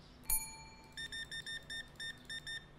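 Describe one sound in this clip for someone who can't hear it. A checkout scanner beeps quickly several times.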